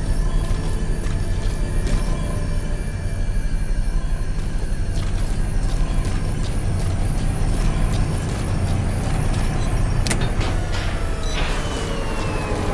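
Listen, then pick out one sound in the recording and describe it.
Soft footsteps shuffle on a hard floor.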